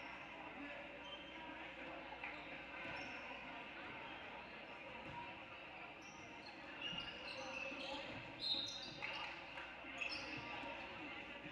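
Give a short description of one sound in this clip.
A crowd murmurs steadily in an echoing gym.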